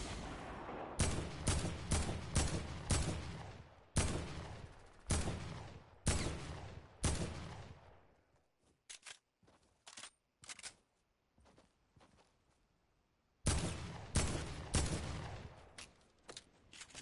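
Rifle shots ring out in bursts, each followed by a rolling echo.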